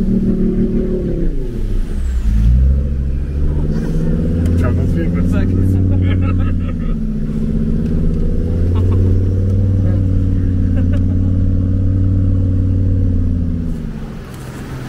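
An engine rumbles and revs as a vehicle drives nearby.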